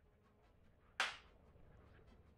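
A sharp whooshing slap sounds once.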